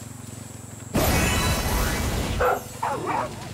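A flamethrower roars in a short burst.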